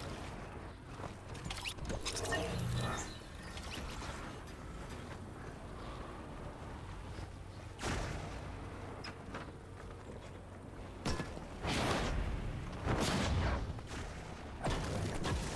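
A pickaxe strikes and knocks against walls and rock, again and again.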